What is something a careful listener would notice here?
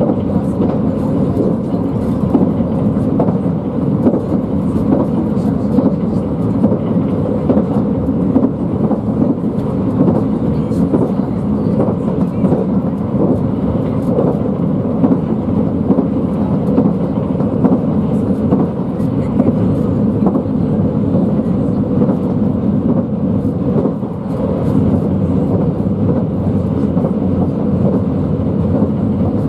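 Train wheels click and rattle over rail joints.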